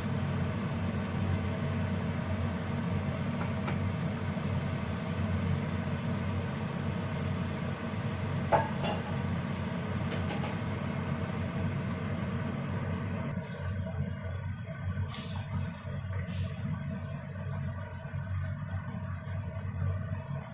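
A spatula scrapes and stirs against a metal pan.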